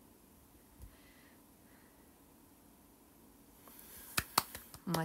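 A young woman speaks softly and close to a phone microphone.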